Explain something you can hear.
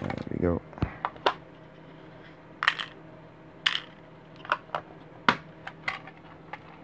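Small plastic pieces click and tap against each other.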